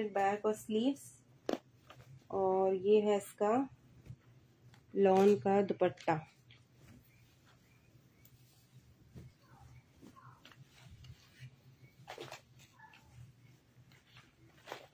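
Fabric rustles and flaps as it is handled.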